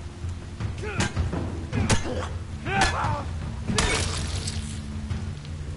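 Heavy blows land in a struggle.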